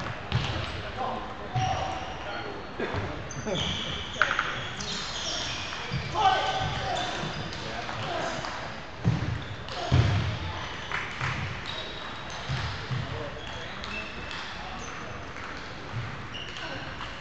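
Table tennis balls click against paddles and the table in a large echoing hall.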